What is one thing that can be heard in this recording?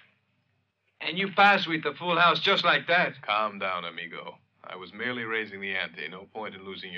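A man speaks tensely up close.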